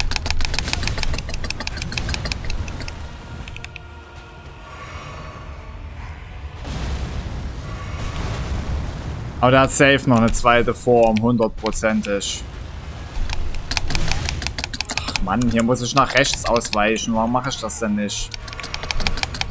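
Swords clash and clang in game combat.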